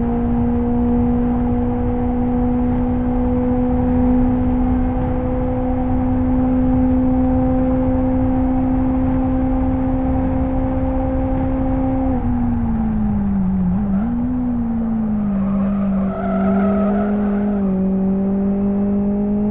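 A car engine roars steadily at high revs, then drops in pitch as the car brakes and shifts down.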